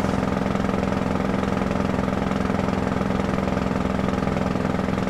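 Tyres roll on the road surface.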